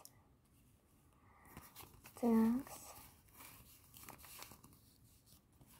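Paper cards rustle and shuffle between hands.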